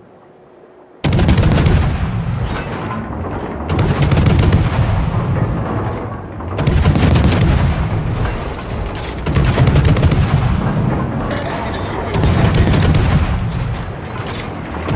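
Heavy naval guns fire in loud, booming salvos.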